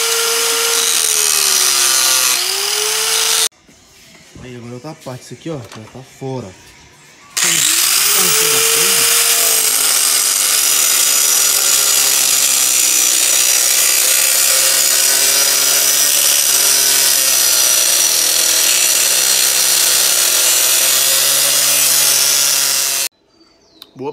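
An angle grinder cuts through steel tubing with a high, shrill whine.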